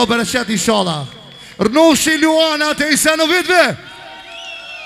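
A man sings loudly into a microphone through loudspeakers in an echoing hall.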